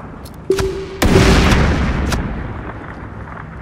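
A sniper rifle fires a loud shot that echoes away.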